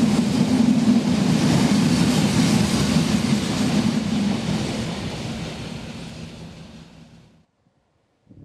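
A goods train rumbles past loudly and fades away.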